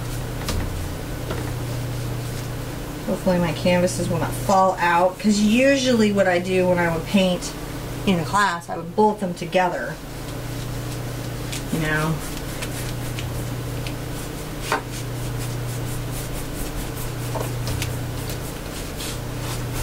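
A paintbrush scrubs softly on canvas.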